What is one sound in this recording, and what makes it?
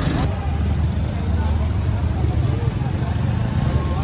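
A crowd of people chatters in the open air nearby.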